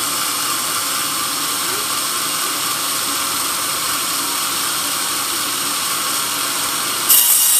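A band saw whines loudly as it cuts through a log.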